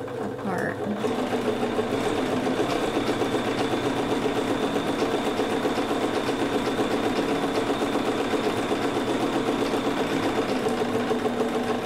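A sewing machine runs steadily, stitching with a fast, even whir.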